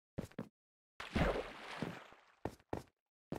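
A block breaks with a short crumbling crunch.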